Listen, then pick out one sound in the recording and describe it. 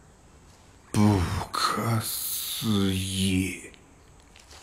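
A man speaks slowly and calmly.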